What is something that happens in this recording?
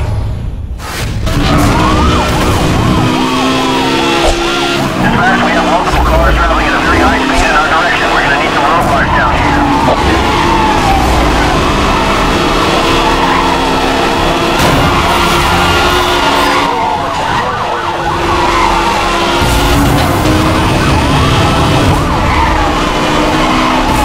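A sports car engine roars loudly at high speed.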